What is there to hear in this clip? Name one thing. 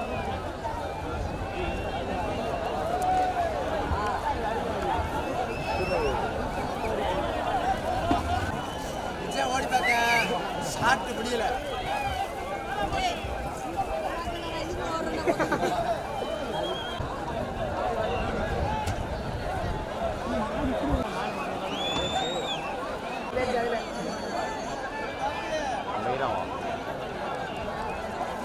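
A large outdoor crowd of men shouts and cheers excitedly.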